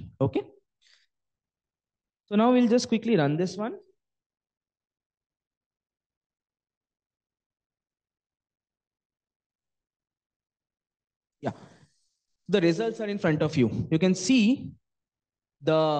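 A man speaks calmly into a microphone, in short bursts with long pauses.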